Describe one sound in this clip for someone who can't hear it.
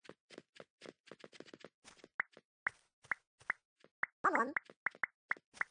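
Quick footsteps tap on stone in a game.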